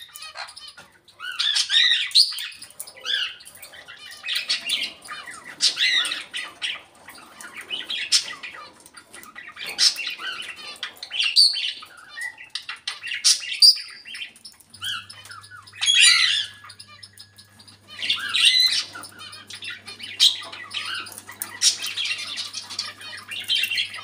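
A parrot squawks and chatters loudly nearby.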